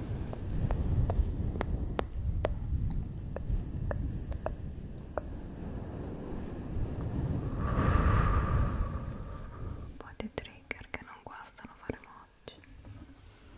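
Fingernails tap and click close to a microphone.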